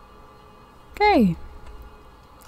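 A cat meows once with a falling cry.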